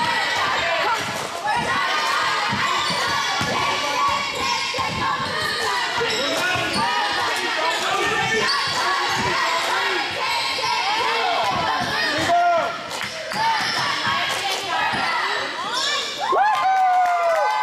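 A basketball bounces on a hard floor with echoing thuds.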